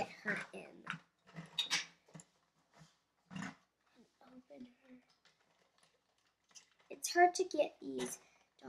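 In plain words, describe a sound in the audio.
Plastic toy bricks click together.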